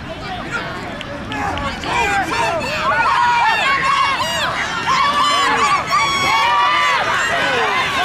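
Children shout and cheer loudly from nearby.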